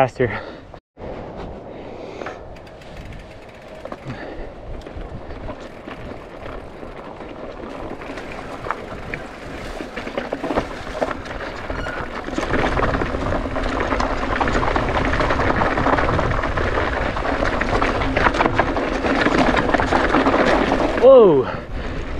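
Bicycle tyres roll and crunch over a dirt and rock trail.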